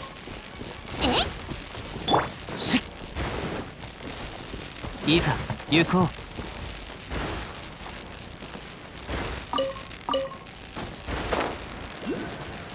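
Short whooshes sweep past as a figure leaps.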